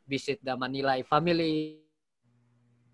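A man talks with animation over an online call.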